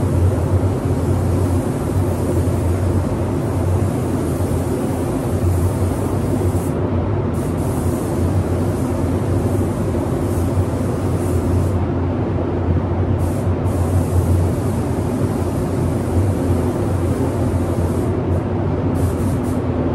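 A spray gun hisses in steady bursts.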